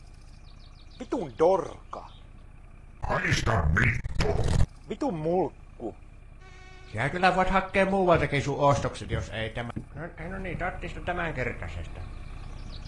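A man speaks gruffly and with irritation, close by.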